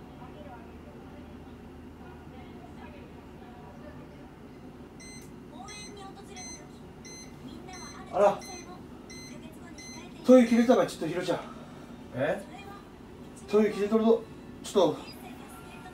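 A television plays quietly in the room.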